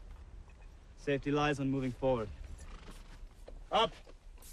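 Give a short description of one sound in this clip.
Another man answers calmly.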